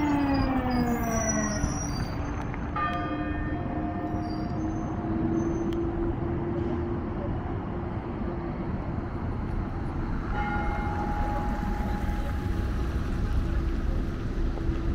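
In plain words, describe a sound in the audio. Car traffic rumbles and hums past on a busy road.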